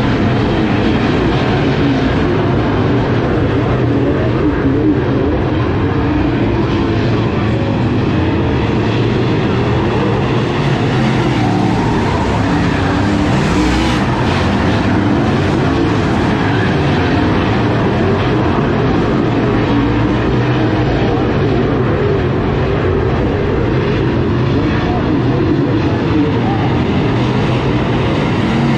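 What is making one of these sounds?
Race car engines roar steadily around a dirt track outdoors.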